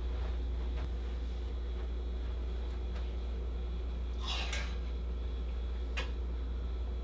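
Metal hangers click on a clothes rail.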